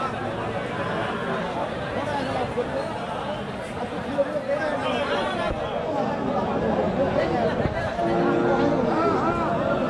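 A crowd of men talk and chatter nearby outdoors.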